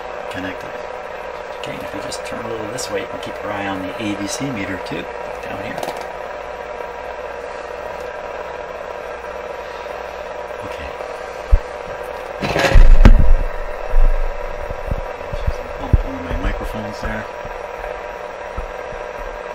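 A radio hisses with static and a steady high whine.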